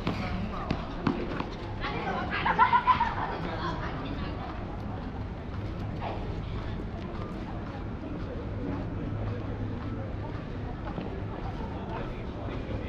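Footsteps tap on paving stones close by.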